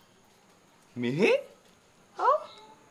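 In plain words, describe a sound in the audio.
A young man speaks close by, sounding agitated.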